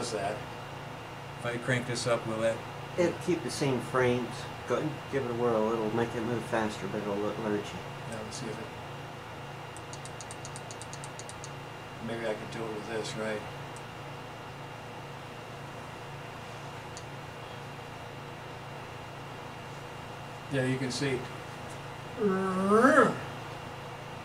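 An elderly man speaks calmly, as if lecturing, in short bursts with pauses.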